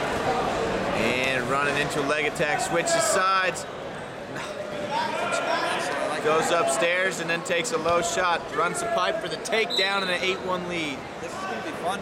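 Men shout loudly from close by, cheering on wrestlers.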